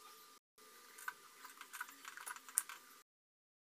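A glass lid clatters onto a metal pot.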